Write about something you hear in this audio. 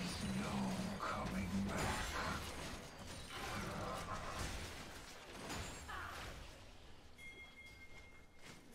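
Magic spells whoosh and crackle in a video game battle.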